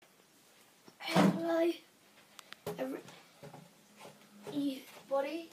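A young child talks excitedly close by.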